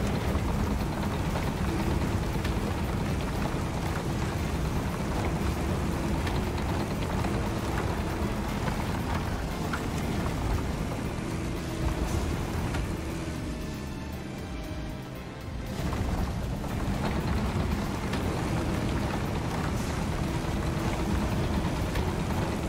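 A bulldozer engine rumbles heavily and steadily.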